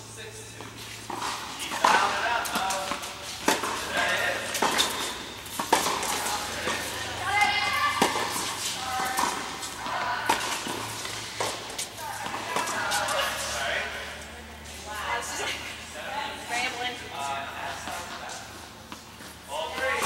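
Young women talk and call out across the courts.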